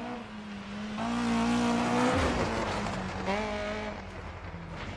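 Tyres spray and crunch over gravel as a car passes.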